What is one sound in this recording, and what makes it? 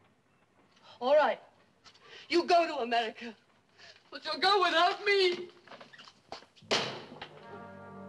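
A woman speaks in distress, close by.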